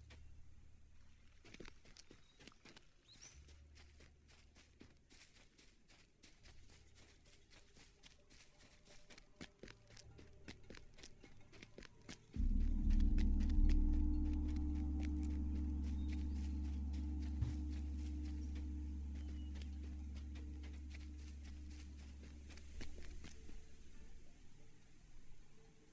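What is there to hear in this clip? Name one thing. Footsteps patter quickly on stone.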